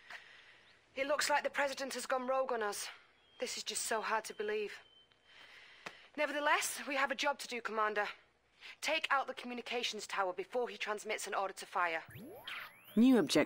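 A young woman speaks calmly over a radio.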